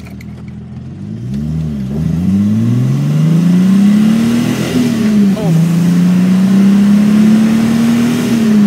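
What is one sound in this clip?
A car engine revs up, rising in pitch with each gear change.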